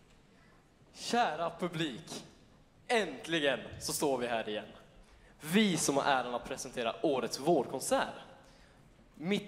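A man speaks with animation into a microphone, heard through loudspeakers in a large hall.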